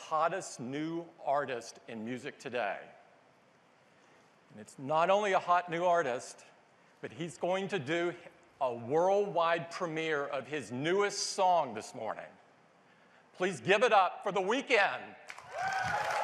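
A middle-aged man speaks with animation through a microphone in a large hall.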